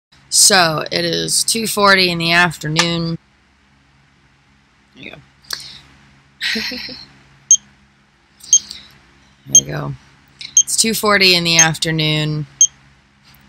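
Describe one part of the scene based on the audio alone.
A young woman speaks close by, with strain in her voice.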